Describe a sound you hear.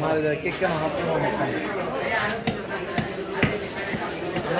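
A cleaver chops into a wooden block with sharp thuds.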